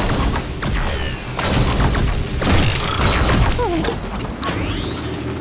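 Cannons boom and shells explode in a video game battle.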